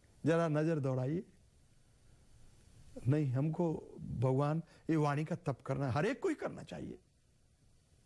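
An elderly man speaks calmly and clearly into a microphone, with pauses.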